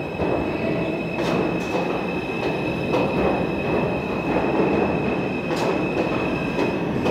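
A subway train rumbles loudly past along the tracks, echoing in an underground station.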